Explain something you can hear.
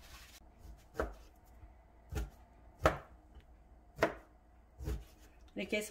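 A knife cuts through meat and knocks on a cutting board.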